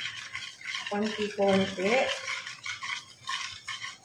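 A whisk beats a thick mixture against a metal bowl.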